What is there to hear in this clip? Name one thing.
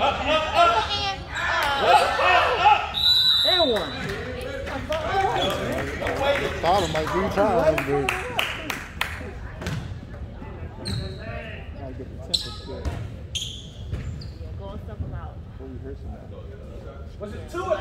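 Spectators cheer and shout in an echoing gym.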